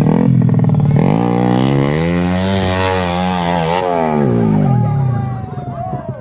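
A dirt bike engine revs hard as the bike climbs a hill.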